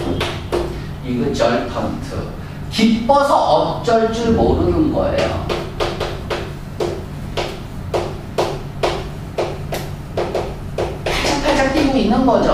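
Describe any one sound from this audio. A young man speaks steadily through a microphone in an echoing room.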